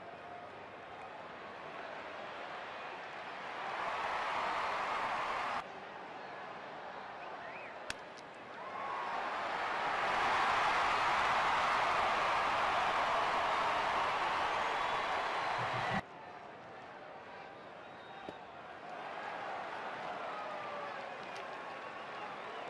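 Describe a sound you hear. A large crowd cheers loudly in an open stadium.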